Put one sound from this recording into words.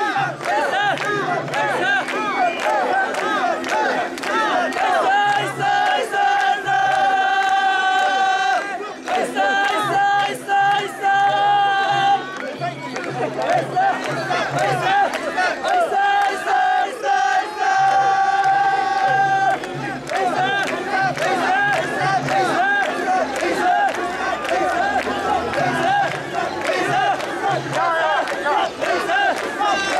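A crowd of men chant loudly together in rhythm, close by.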